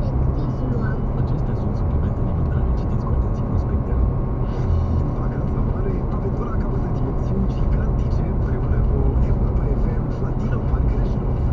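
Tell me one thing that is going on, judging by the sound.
Tyres roar steadily on a highway.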